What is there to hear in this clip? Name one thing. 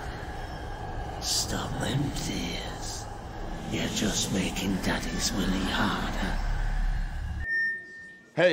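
A man speaks quietly and strained, close by.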